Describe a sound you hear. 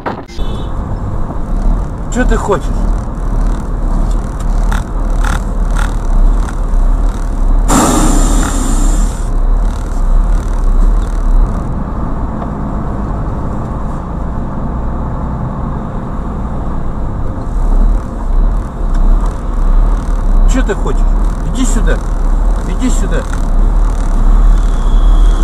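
A car drives in traffic with its tyres hissing on a wet road.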